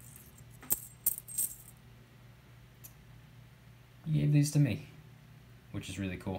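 Small metal bars clink together in a hand.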